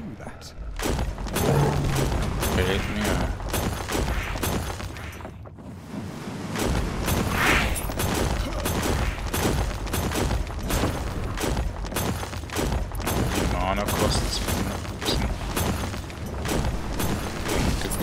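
Magic blasts crash and crackle rapidly in a fight.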